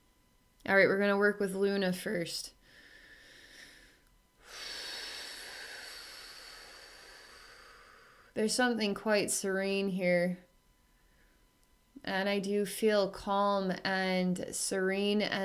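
A woman speaks calmly and softly close by.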